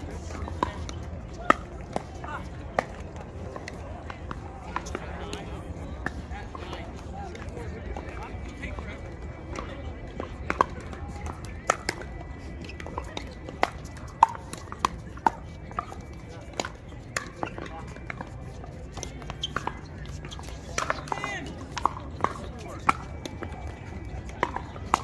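Pickleball paddles pop against a plastic ball outdoors.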